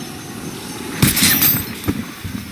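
Gunshots bang against a metal fence.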